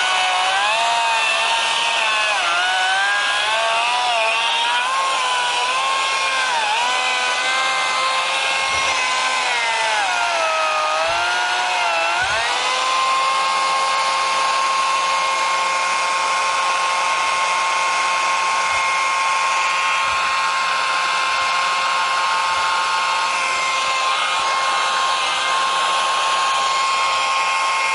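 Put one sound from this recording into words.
A brush cutter engine whines close by, revving up and down and then running at a steady pitch.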